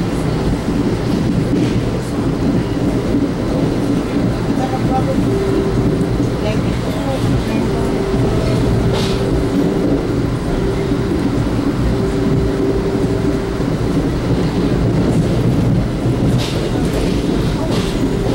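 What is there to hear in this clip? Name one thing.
A train rumbles and rattles steadily along the tracks.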